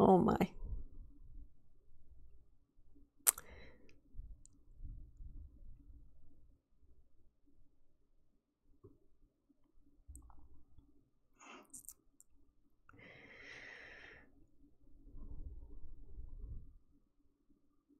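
A young woman speaks quietly into a microphone.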